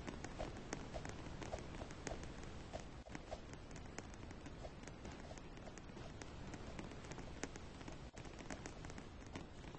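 Quick footsteps patter on a hard surface.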